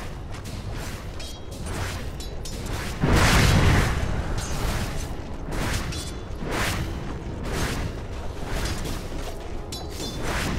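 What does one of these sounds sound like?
Magic spells burst and crackle during a video game battle.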